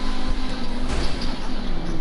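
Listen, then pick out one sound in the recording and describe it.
Metal scrapes with a grinding screech as a car brushes a truck.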